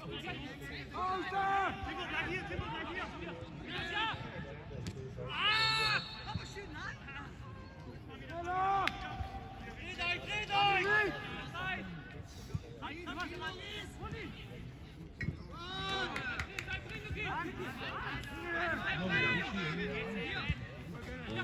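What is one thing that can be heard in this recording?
Young men shout and call out to each other across an open field outdoors.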